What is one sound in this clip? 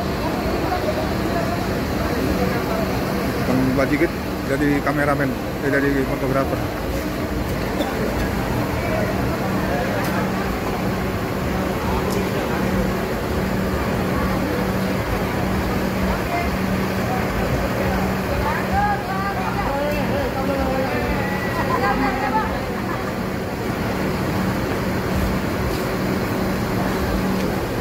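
A bus engine idles steadily.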